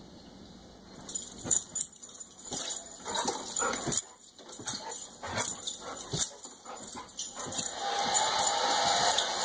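A dog barks excitedly, close by.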